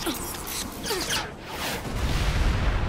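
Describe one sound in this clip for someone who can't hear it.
Missiles whoosh through the air.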